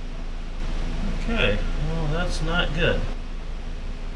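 A man speaks briefly and calmly nearby.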